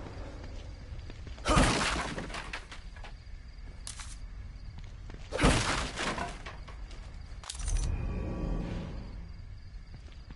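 Footsteps crunch slowly on rough ground.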